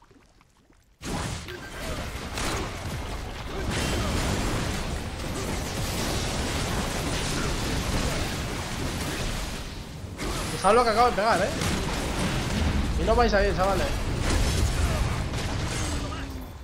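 Game fight sounds clash and crackle with spell blasts.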